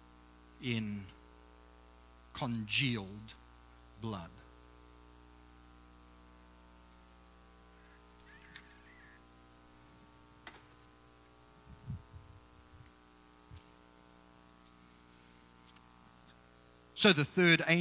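A man speaks loudly to an audience in an echoing hall.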